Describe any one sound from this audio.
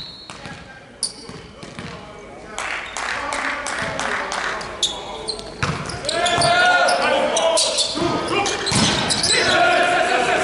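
A volleyball is struck with sharp slaps and thuds.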